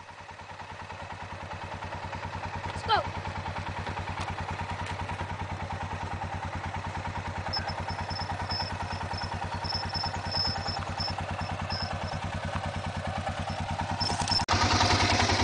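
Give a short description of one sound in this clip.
A quad bike engine chugs steadily nearby.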